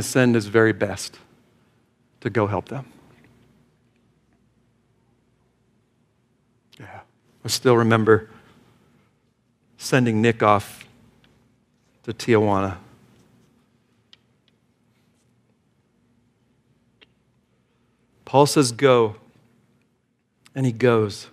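A middle-aged man speaks slowly and with emphasis into a microphone, with long pauses between phrases.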